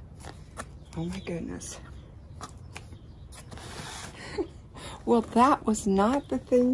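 Hands rustle and scrape against a cardboard box.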